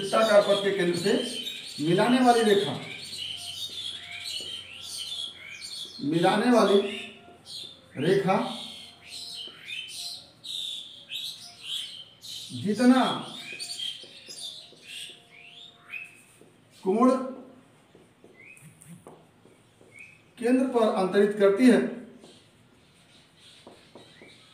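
A marker squeaks and scratches on a whiteboard.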